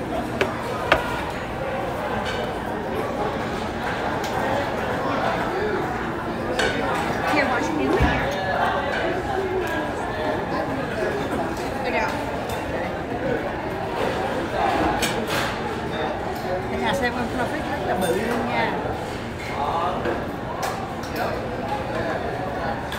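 Cutlery and crab shells click against plates.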